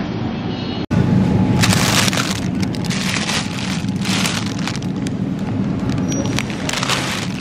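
A plastic bag of grapes rustles as it is handled.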